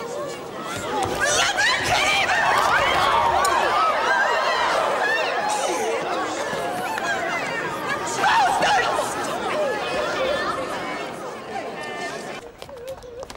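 Several women wail and shout loudly and emotionally.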